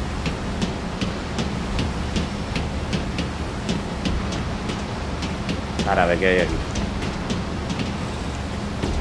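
Footsteps clang quickly on a metal floor.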